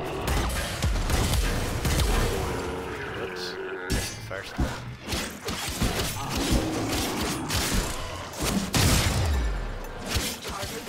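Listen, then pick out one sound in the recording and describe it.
Heavy explosions boom with a deep rumble.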